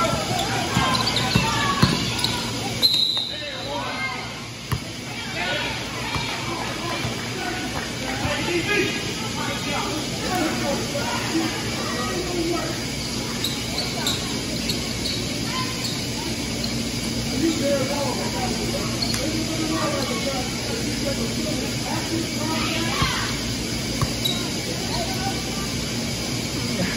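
A crowd of spectators chatters and calls out.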